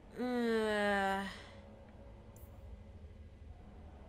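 A soft menu click sounds once.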